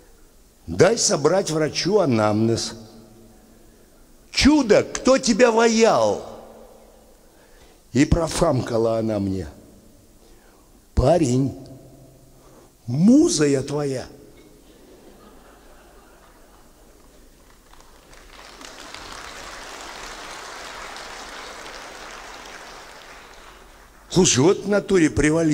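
An elderly man speaks with animation through a microphone in a large hall, pausing between phrases.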